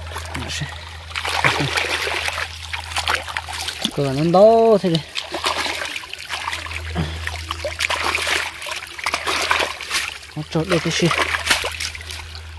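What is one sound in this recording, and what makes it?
A hand splashes and churns shallow water.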